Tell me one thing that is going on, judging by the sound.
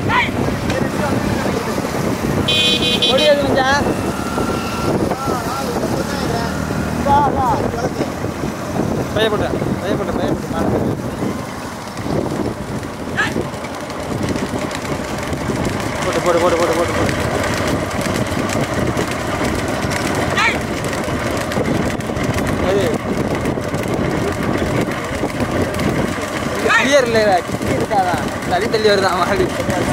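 Motorcycle engines hum steadily close by.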